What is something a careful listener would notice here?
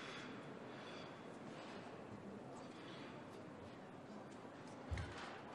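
A crowd murmurs softly in a large echoing arena.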